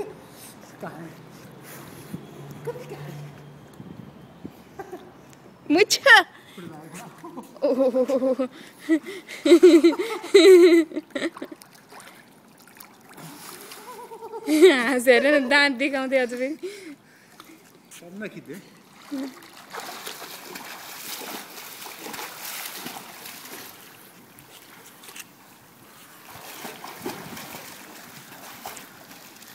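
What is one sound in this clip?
Water splashes gently as a small child paddles.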